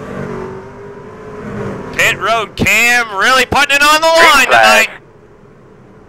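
Racing truck engines roar and whine, rising and falling in pitch as they pass close by.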